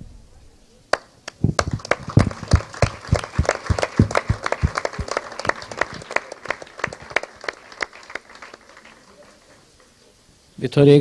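A small crowd applauds, clapping their hands.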